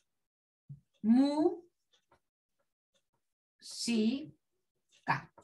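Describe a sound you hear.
A woman speaks calmly nearby in short phrases.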